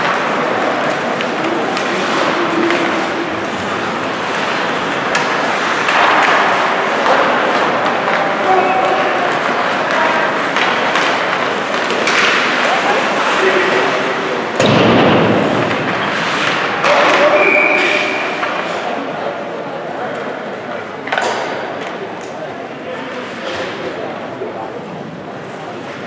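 Sticks clack against a puck.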